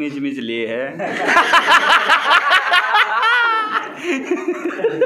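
Young men laugh loudly together.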